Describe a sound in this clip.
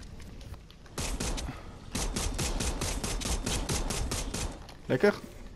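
A pistol fires a rapid burst of shots.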